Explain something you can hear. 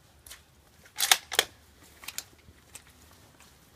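Metal parts of a rifle click and clack as it is handled.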